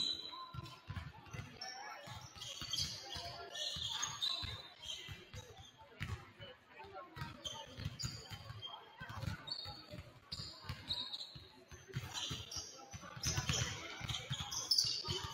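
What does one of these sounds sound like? Basketballs bounce rapidly on a wooden court in a large echoing gym.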